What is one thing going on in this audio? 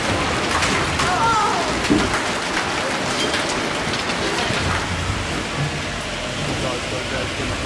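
Hailstones fall heavily and clatter on pavement outdoors.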